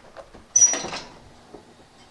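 An oven door creaks open with a clatter.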